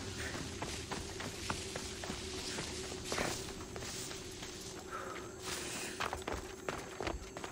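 Footsteps patter quickly through grass and over stone.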